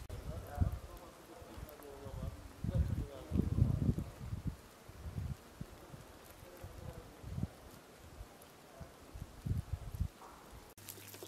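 Wind gusts rumble outdoors in the snow.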